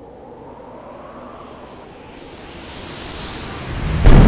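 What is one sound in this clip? Air rushes past loudly during a long leap.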